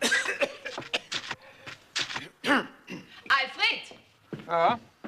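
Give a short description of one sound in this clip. A middle-aged woman talks with animation.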